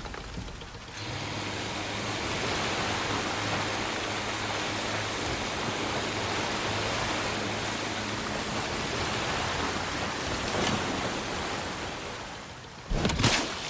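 A motorboat engine hums steadily as the boat speeds along.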